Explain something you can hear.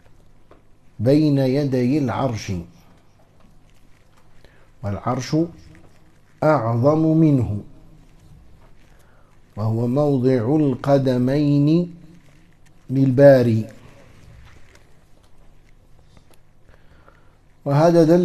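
A middle-aged man speaks calmly in short phrases with pauses, close to a headset microphone.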